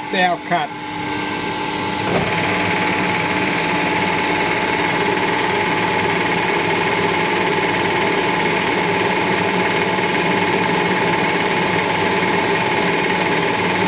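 A metal lathe spins with a steady mechanical whir.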